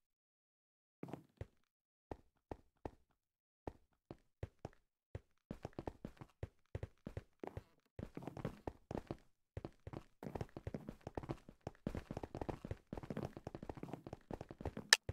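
Footsteps tap on wooden boards.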